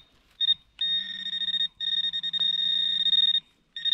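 A small trowel scrapes and rustles through dry leaves and soil.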